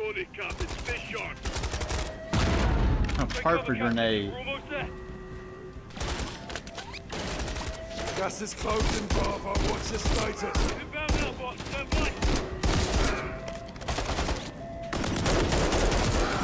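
Rapid gunfire bursts loudly and echoes.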